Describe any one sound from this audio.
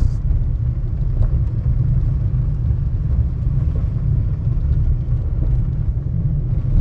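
A vehicle rumbles steadily over a gravel road.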